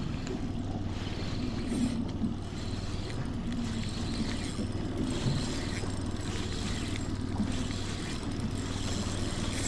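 Wind rumbles and buffets outdoors over open water.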